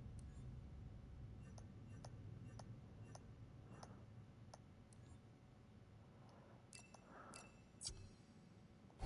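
Soft menu clicks tick at an even pace.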